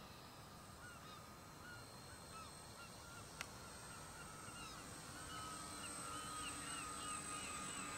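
A model plane's engines drone steadily overhead, growing louder as it nears.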